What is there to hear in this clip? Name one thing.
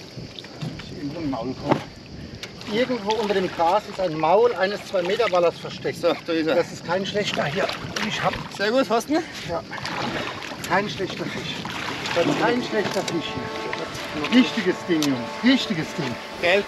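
A man talks with animation nearby, outdoors.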